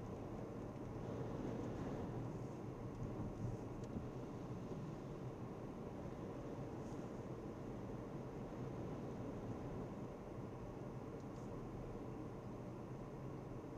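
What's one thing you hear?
A car drives along a road with a steady low rumble of engine and tyres.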